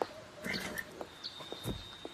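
A horse's hooves thud on the ground.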